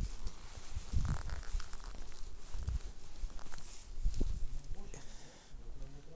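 Footsteps tread on a paved street outdoors.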